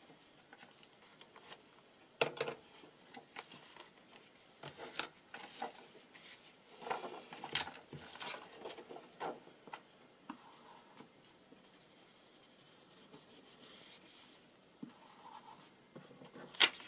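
Paper rustles and slides as sheets are handled.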